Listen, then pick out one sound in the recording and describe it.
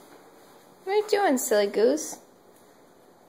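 A baby squeals loudly up close.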